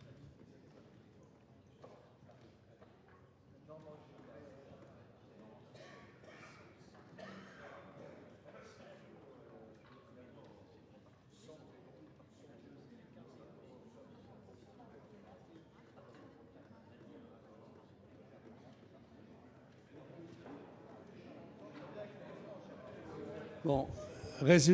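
Many people murmur and move about in a large echoing hall.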